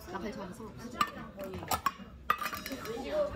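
A metal bowl clinks against a table.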